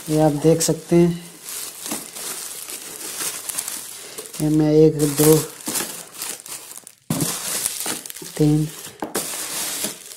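Plastic bubble wrap crinkles and rustles as it is handled.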